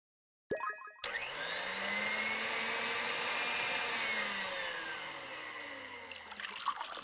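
A blender whirs loudly as it blends fruit.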